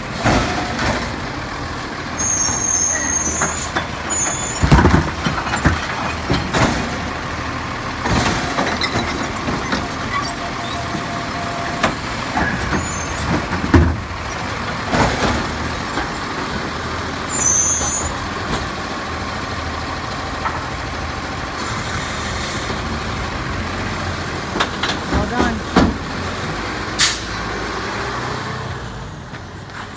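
A garbage truck engine idles with a low rumble.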